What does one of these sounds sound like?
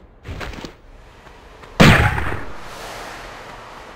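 Footsteps slap on stone.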